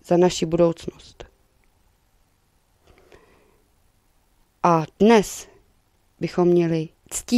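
A young woman speaks calmly into a microphone, with short pauses.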